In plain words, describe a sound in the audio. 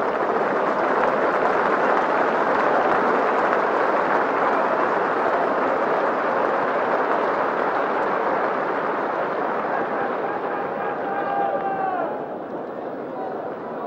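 A large crowd roars and cheers steadily outdoors.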